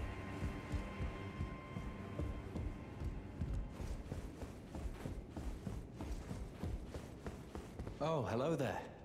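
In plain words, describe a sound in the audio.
Footsteps tread quickly across a stone floor.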